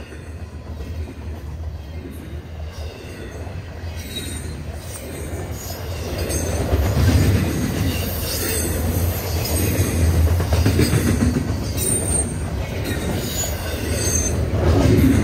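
A freight train rumbles past close by, growing louder.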